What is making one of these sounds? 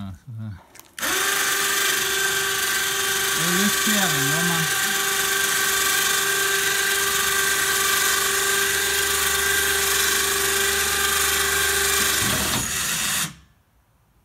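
An electric motor whines steadily as it lowers a plough blade.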